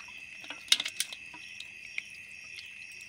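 A net rim knocks against a plastic basin.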